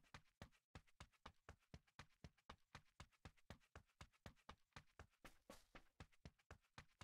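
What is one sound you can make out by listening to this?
Quick footsteps run steadily over dirt.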